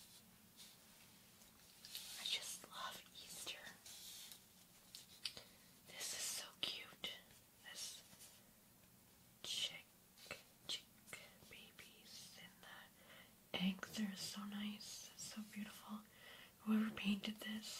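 Fingernails tap on a stiff card close to a binaural microphone.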